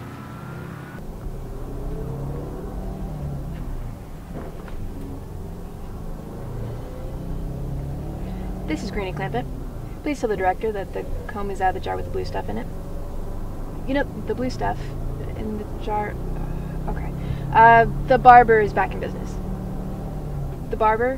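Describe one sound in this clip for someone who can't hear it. A vehicle's engine rumbles steadily from inside.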